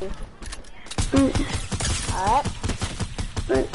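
A rifle fires in quick bursts.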